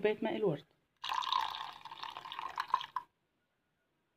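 Liquid pours into a bowl with a splashing gurgle.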